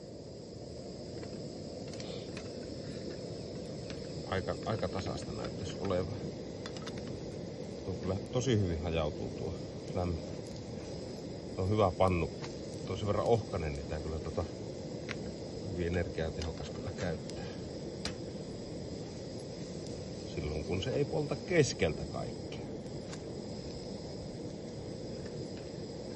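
A metal spatula scrapes and taps against a frying pan.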